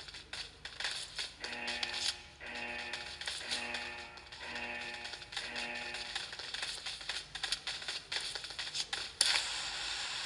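Gunshots crack rapidly from a small phone speaker.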